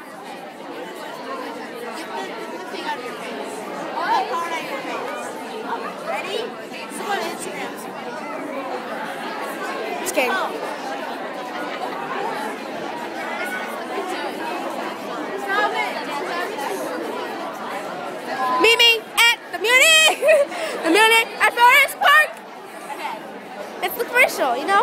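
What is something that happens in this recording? Many girls chatter and talk over one another.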